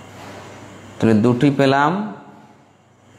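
A man chants briefly and close to a microphone.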